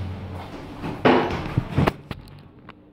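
Elevator doors slide open with a clatter.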